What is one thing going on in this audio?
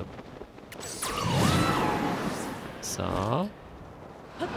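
A strong gust of air whooshes upward.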